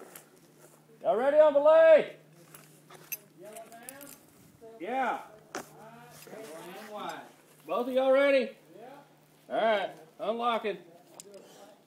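A man speaks loudly and close by, in short bursts.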